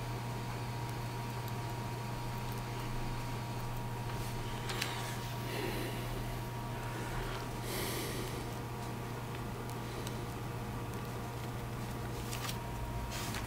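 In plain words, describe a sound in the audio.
A small metal tool scrapes and clicks against a hard plastic piece.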